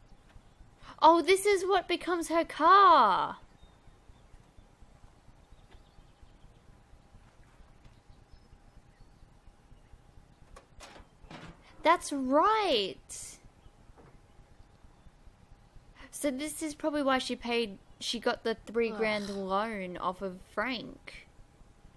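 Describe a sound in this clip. A young woman speaks in short, weary phrases, close by.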